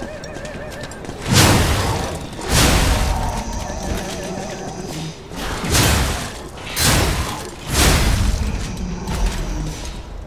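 Heavy metal blades clash and slash in a fierce fight.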